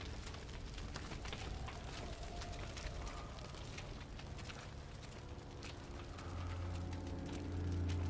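Footsteps squelch through wet mud.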